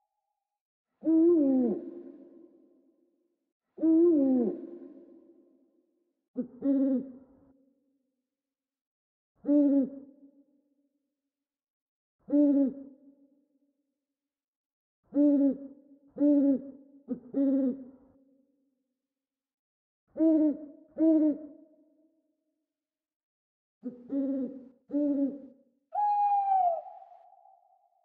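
An owl hoots in short, deep calls again and again, with pauses between.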